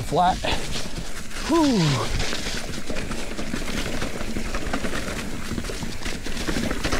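A mountain bike rattles over rough ground.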